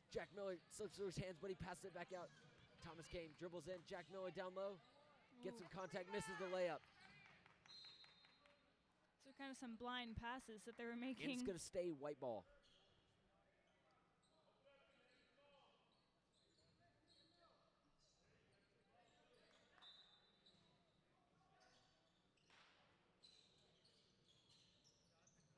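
Sneakers squeak sharply on a hardwood court, echoing in a large hall.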